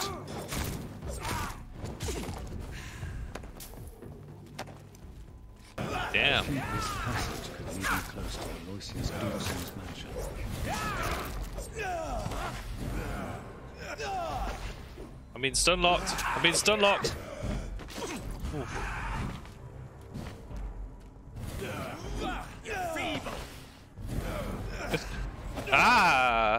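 Blades slash and strike flesh in quick bursts.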